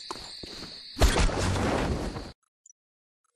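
A pistol fires a burst of shots.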